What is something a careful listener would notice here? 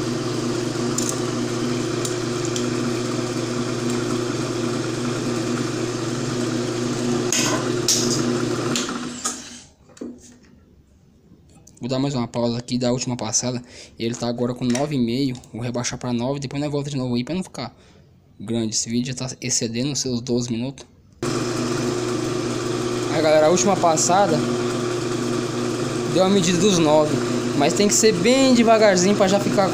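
A cutting tool scrapes against spinning metal.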